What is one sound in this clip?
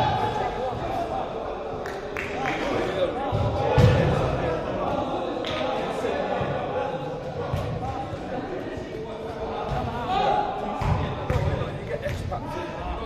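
Men shout and call to each other in a large echoing hall.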